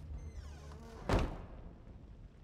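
A heavy thud sounds against a wooden door.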